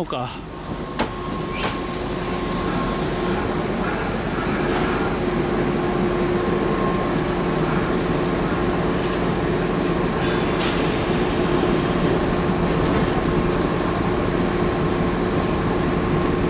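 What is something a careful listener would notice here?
An electric train hums steadily nearby.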